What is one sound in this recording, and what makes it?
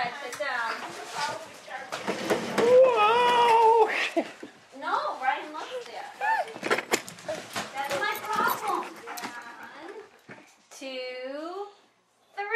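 A toddler squeals and babbles excitedly.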